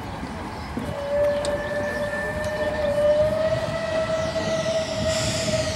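A steam train whistle blows from further away.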